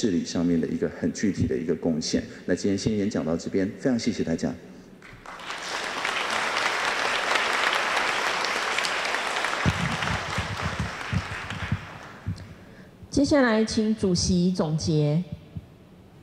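A woman speaks calmly through a microphone and loudspeakers in a large hall.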